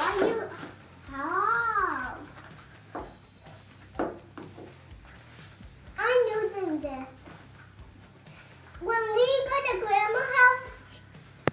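A little girl talks in a high voice.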